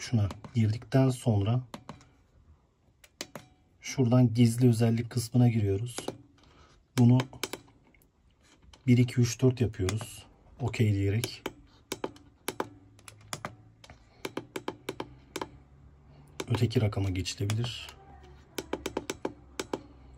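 A device's buttons click as a finger presses them.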